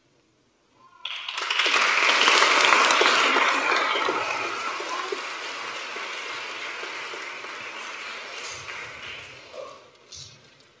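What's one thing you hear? An audience claps and then the applause slowly fades.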